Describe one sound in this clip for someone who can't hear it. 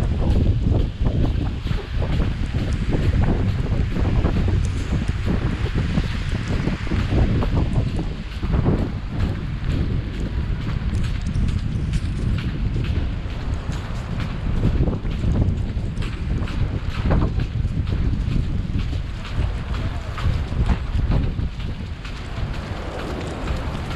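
Wind buffets outdoors with a low, steady rumble.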